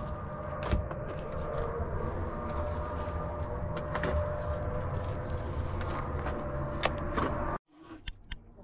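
A shovel scrapes and digs into dry soil.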